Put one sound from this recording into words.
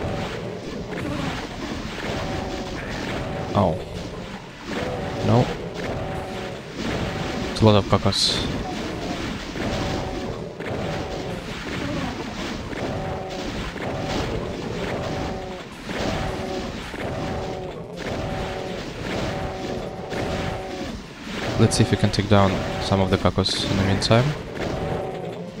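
A shotgun fires in loud, repeated blasts.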